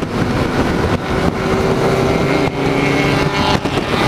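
Other motorcycle engines drone nearby as they are overtaken.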